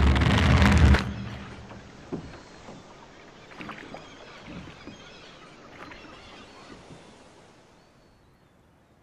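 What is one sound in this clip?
Waves lap softly against a small boat.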